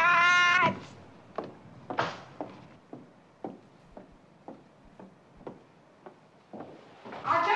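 High-heeled shoes click on a wooden floor.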